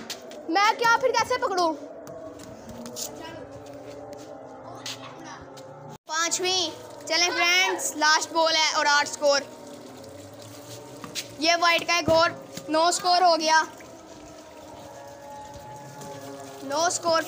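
A young child talks loudly and excitedly close by.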